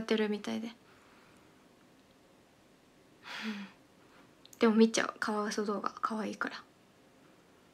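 A young woman speaks softly and casually into a nearby microphone, in short bursts.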